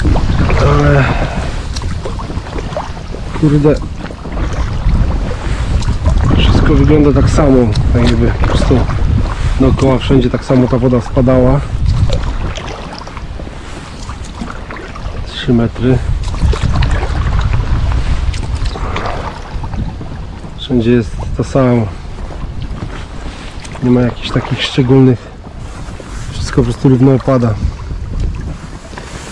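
Water laps against the side of a small boat.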